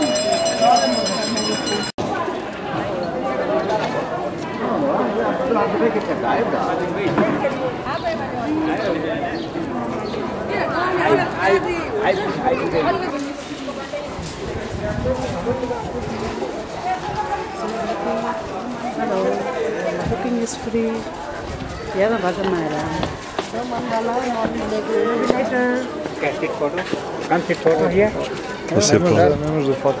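A crowd of people chatter outdoors nearby.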